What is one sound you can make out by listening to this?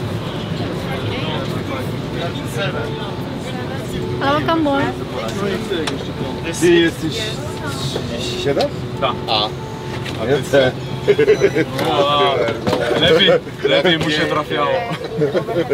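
Men chat casually nearby.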